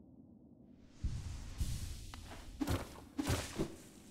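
Rocks crumble and thud as a wall breaks apart.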